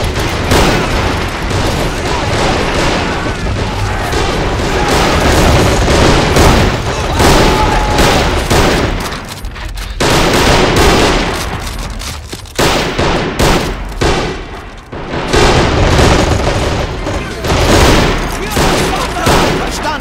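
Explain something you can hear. Rifles and machine guns fire in rapid, crackling bursts.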